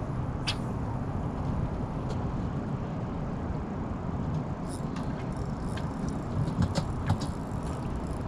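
Wind blusters steadily outdoors.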